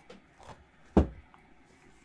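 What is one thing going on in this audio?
A deck of cards is set down with a thud on a table.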